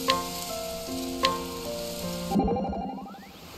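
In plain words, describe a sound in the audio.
A short plucked tune plays and stops.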